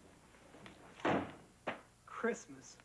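A folder slaps down hard on a desk.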